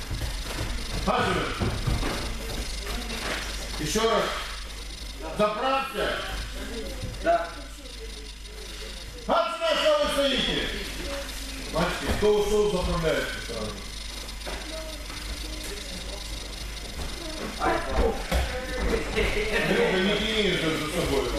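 A man talks calmly in a large echoing hall.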